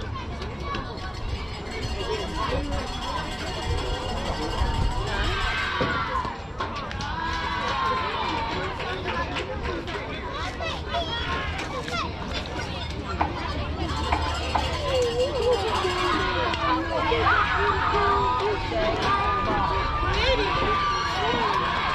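Children's voices chatter and call out in the open air.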